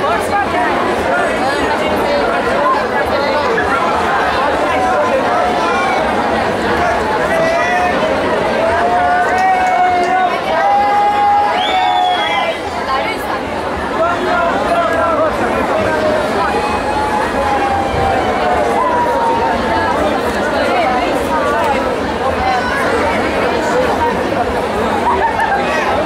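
Pop music with a singing voice plays loudly through loudspeakers.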